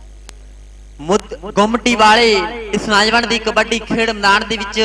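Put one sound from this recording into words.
A young man chants rapidly and breathlessly, close by.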